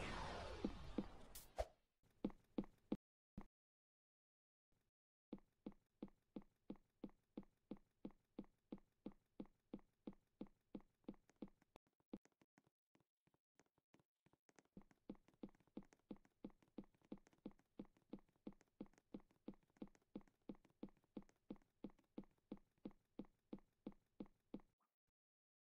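Footsteps tap quickly and steadily on a hard surface.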